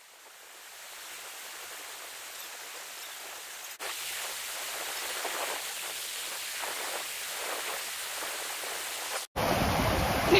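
A shallow river rushes over rocks.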